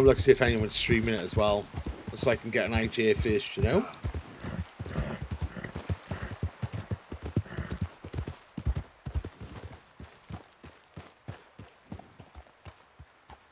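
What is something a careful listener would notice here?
A horse's hooves beat at a gallop.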